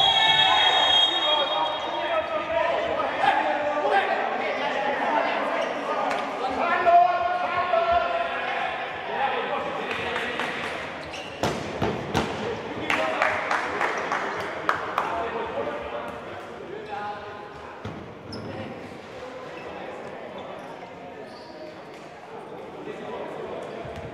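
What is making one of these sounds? A ball thuds off players' feet in a large echoing hall.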